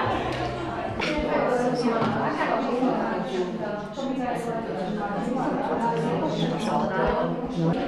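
Several women chat and talk over one another nearby.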